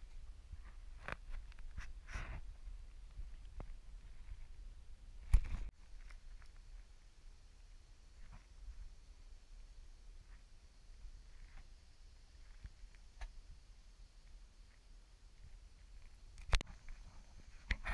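A kayak paddle splashes and dips into the water.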